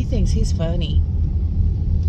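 A woman speaks briefly and calmly, close by.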